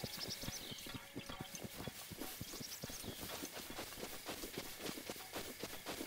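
Quick footsteps rustle through tall grass.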